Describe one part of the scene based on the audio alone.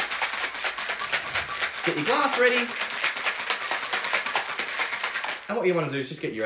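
Ice rattles hard in a cocktail shaker.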